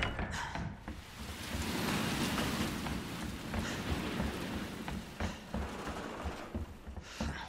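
Footsteps splash on a wet floor.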